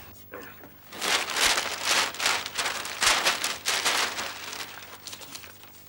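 A newspaper rustles and crackles loudly.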